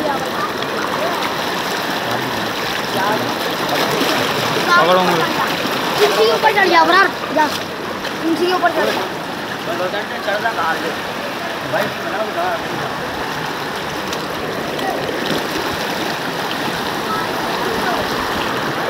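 Floodwater rushes and churns along a street outdoors.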